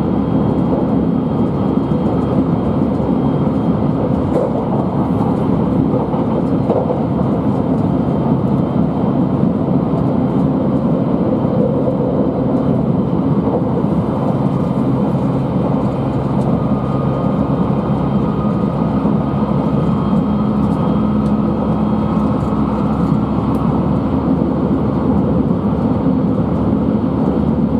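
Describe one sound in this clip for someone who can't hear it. A train rumbles steadily along the tracks at speed.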